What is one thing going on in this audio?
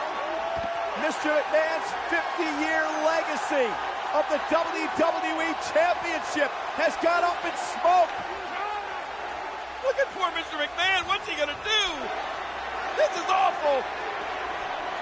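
A man speaks with animation to a crowd through a microphone.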